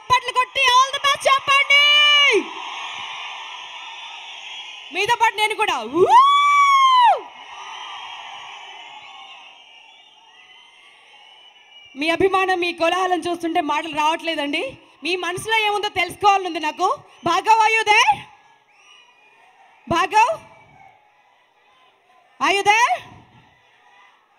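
A woman sings into a microphone in a large hall.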